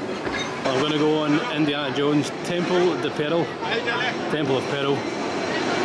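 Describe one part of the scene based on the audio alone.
A crowd of people murmurs in the distance outdoors.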